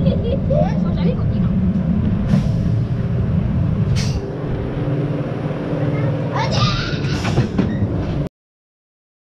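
A roller coaster car rumbles and clatters along its track.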